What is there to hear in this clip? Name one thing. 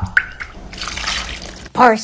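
Liquid dressing pours and splashes onto salad in a bowl.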